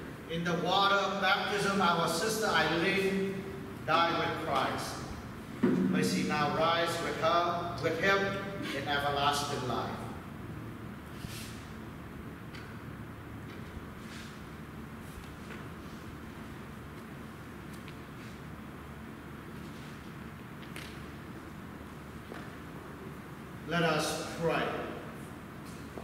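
A man speaks slowly and calmly into a microphone in a large echoing hall.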